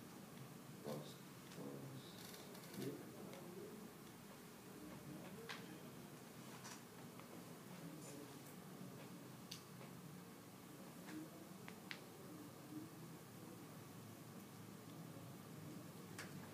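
Keys click on a laptop keyboard.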